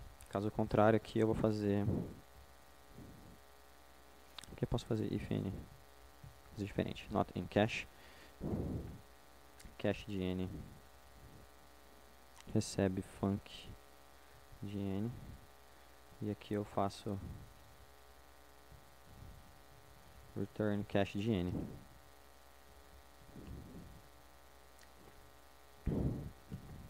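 A man speaks calmly through a microphone in a large hall, pausing between phrases.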